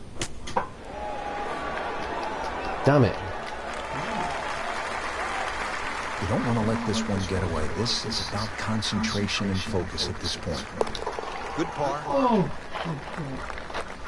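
A crowd murmurs softly in the distance.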